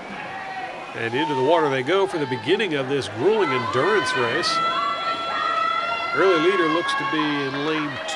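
Spectators cheer and shout loudly in an echoing hall.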